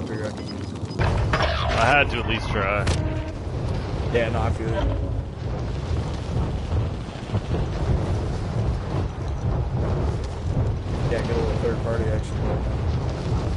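Wind rushes past loudly during a fall through the air.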